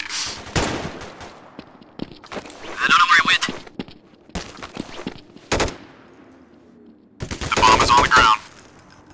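Footsteps thud on a hard floor in an echoing corridor.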